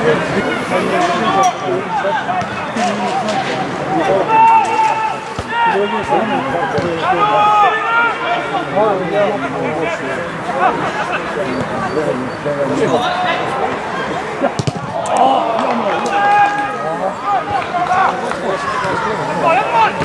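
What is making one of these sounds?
A crowd of spectators murmurs and cheers outdoors.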